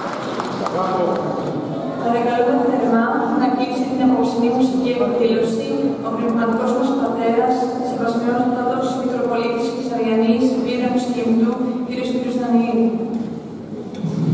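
A mixed choir sings with echo in a large hall.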